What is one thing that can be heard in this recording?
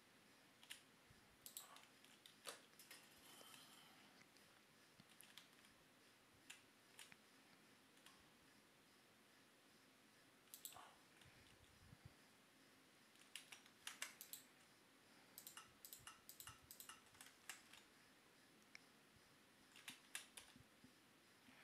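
Small blocks are placed with short soft clicks.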